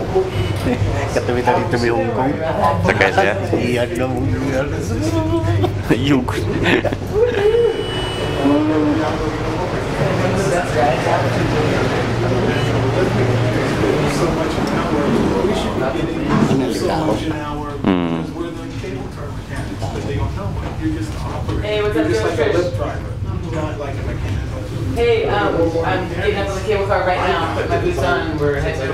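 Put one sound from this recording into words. A cable car cabin hums and rumbles steadily as it moves.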